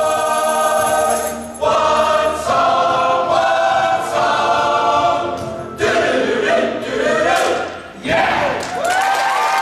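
A mixed choir sings together in a large hall.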